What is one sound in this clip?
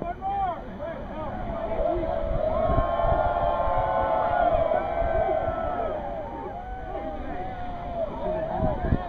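A crowd of men cheers and shouts together in the water.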